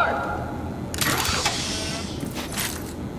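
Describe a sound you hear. A metal crate clanks open with a hiss.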